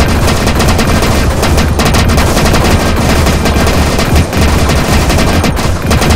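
Rapid electronic laser blasts and zaps fire nonstop.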